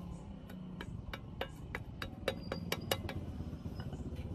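Sharp metallic knocks ring out as a tube taps a cup into a metal frame.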